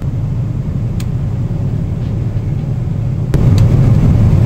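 A fingertip taps on a touch panel.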